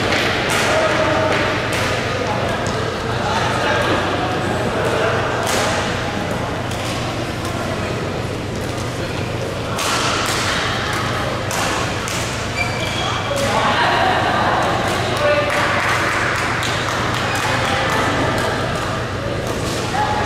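Rackets strike shuttlecocks with sharp pops.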